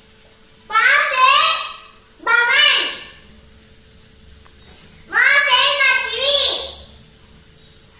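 A young boy recites loudly and clearly, in short bursts with pauses.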